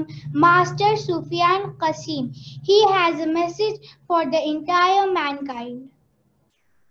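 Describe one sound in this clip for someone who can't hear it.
A young girl speaks clearly and expressively into a microphone.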